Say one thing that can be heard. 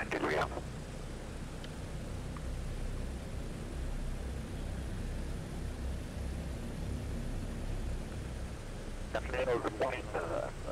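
An aircraft engine hums low and steady.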